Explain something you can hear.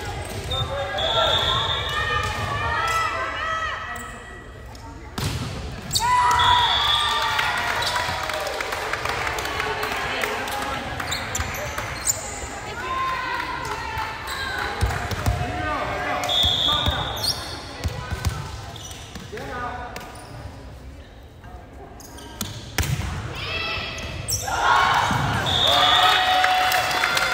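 Players' sneakers squeak on the court floor.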